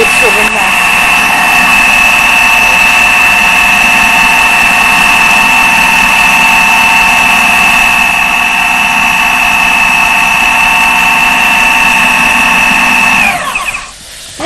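A food processor motor whirs steadily, then stops.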